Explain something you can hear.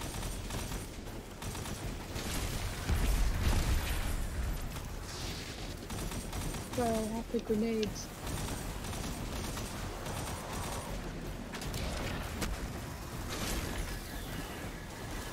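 Gunfire and energy blasts crackle and boom.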